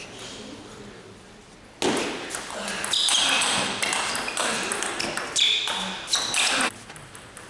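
A ball clicks back and forth on a table and paddles in a fast rally.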